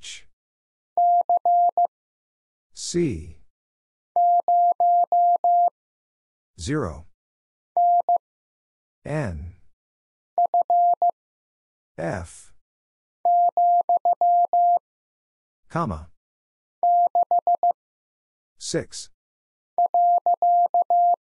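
Morse code beeps come in short, quick bursts.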